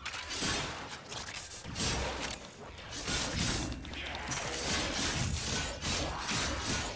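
Gunfire and energy blasts crackle in quick bursts.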